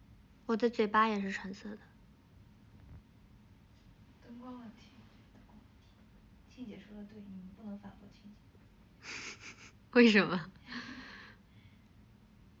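A young woman speaks softly and playfully close to a phone microphone.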